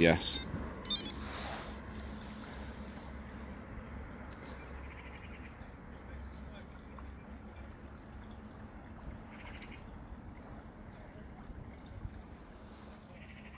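A small boat motor hums faintly across water.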